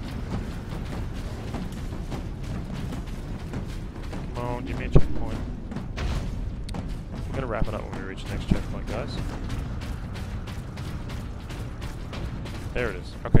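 Heavy armoured footsteps thud steadily on dirt and sand.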